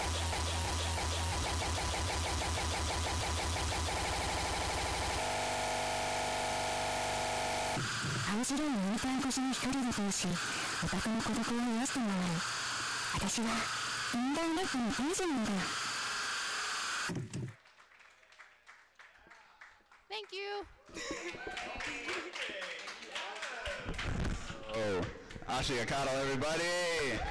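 Loud electronic dance music plays through speakers.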